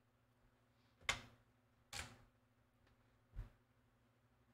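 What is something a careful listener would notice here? A game menu beeps as options are selected.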